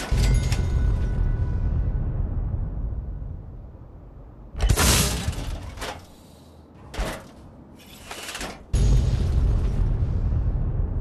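A loud explosion booms and rumbles away.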